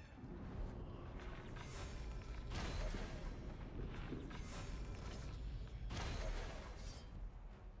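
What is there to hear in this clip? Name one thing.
A bowstring twangs as arrows are loosed.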